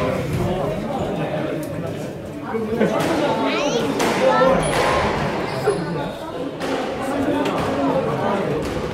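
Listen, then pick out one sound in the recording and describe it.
Squash players' shoes step across a wooden court floor.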